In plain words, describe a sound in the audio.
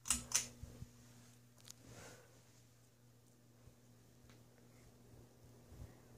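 A ceiling fan whirs steadily.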